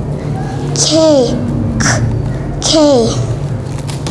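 A young girl speaks close to a microphone, with animation.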